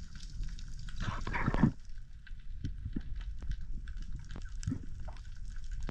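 A diver's breathing bubbles gurgle and rumble underwater.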